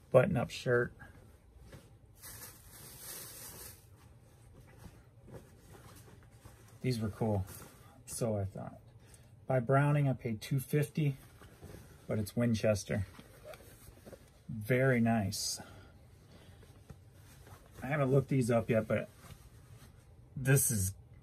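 Fabric rustles as a shirt is unfolded and handled.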